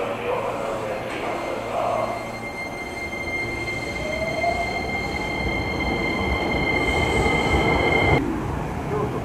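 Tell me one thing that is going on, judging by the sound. An electric train motor whines with a steady high tone.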